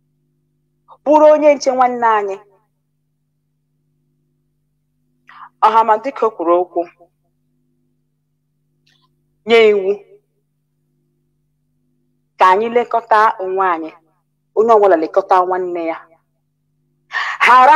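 A woman speaks with animation in short bursts, heard over an online call.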